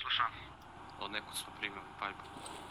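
A rifle magazine is pulled out and clicks back into place.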